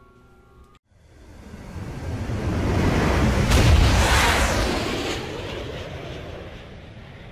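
A propeller plane roars past overhead and fades.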